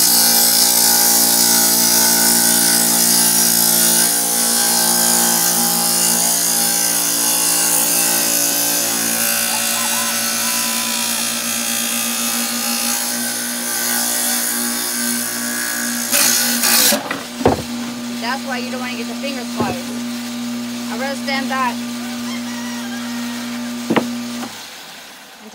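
A saw motor hums steadily, then stops.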